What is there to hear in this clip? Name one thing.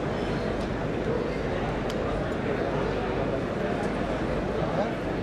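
A middle-aged man speaks steadily into a microphone, heard through loudspeakers in a large echoing hall.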